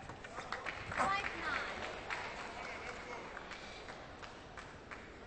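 A crowd in a large echoing hall cheers and applauds.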